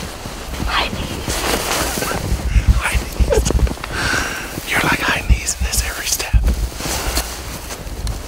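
An older man laughs and chats close by.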